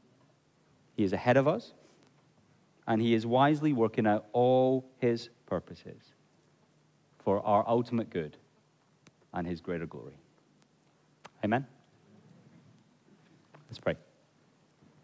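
A man speaks calmly through a headset microphone in a reverberant hall.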